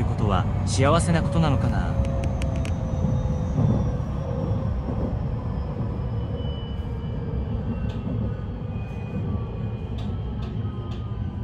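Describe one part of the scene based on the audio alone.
A train's motor whines, falling slowly in pitch as it slows.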